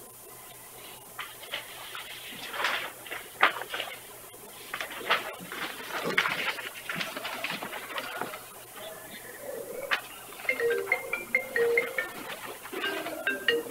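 A man speaks calmly at a meeting table, heard from across the room.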